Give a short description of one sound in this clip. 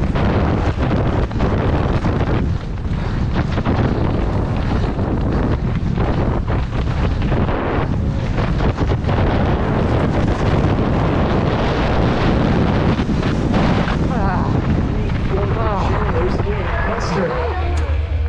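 Bike tyres rumble and rattle over a rough dirt trail.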